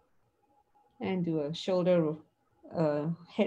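A middle-aged woman speaks warmly over an online call.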